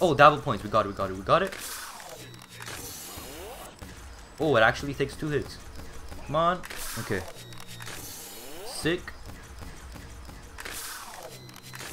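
A blade slashes through the air.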